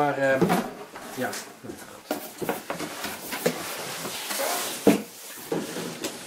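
Cardboard scrapes and rubs as a box lid is slid off.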